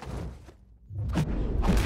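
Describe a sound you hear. Heavy punches land with thuds.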